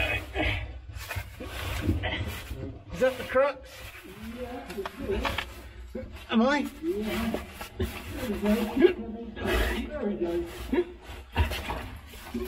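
Clothing scrapes and rustles against rock.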